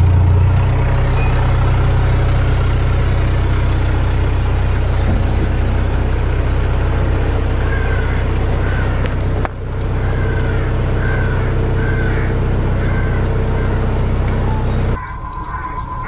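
A boat engine drones steadily close by.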